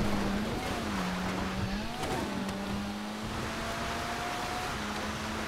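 Tyres skid on loose dirt.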